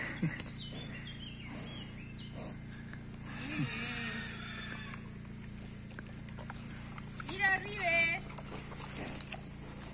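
A pig snuffles and roots in the dirt close by.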